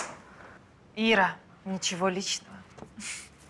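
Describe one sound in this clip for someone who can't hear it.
A woman speaks sharply, close by.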